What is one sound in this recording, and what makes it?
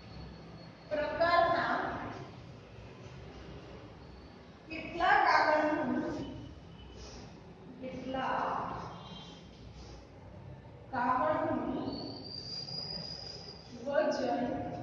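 A young woman speaks clearly in short phrases.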